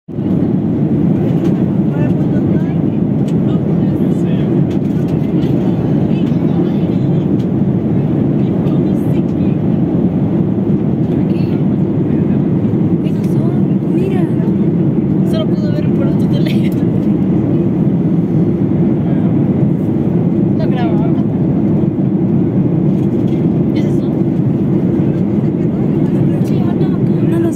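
A jet engine roars steadily in a low, constant drone, heard from inside an airliner cabin.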